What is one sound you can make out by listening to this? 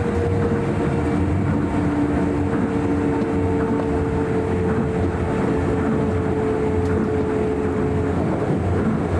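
A train's motor hums with a steady whine.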